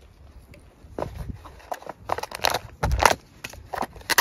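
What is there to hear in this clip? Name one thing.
A plastic sachet crinkles and tears open.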